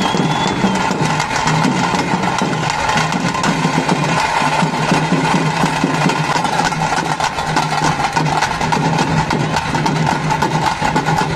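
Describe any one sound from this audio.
Dancers stamp their feet.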